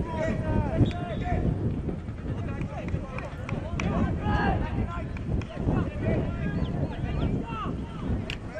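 Young men shout to each other across an open outdoor pitch.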